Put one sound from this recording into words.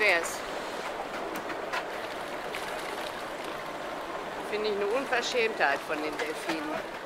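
Wind blows across the open water.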